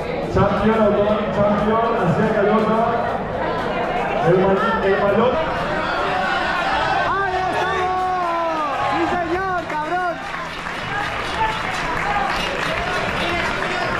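A crowd cheers and applauds outdoors.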